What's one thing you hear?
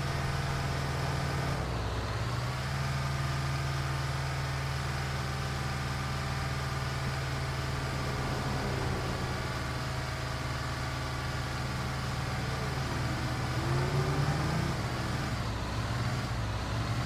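Tyres roll over a road.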